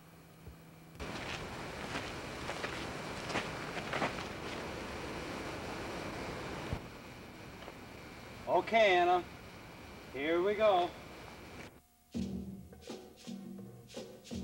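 Footsteps crunch on a gravel path.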